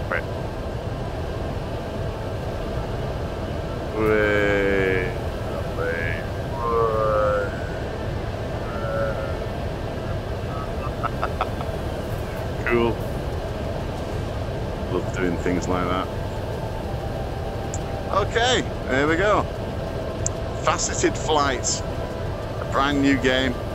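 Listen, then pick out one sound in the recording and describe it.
Wind rushes steadily past a gliding craft.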